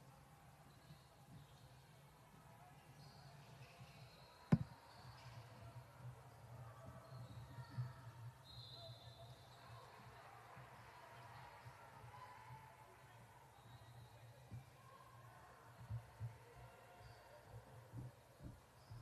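Basketballs bounce and thud on a wooden floor in a large echoing gym.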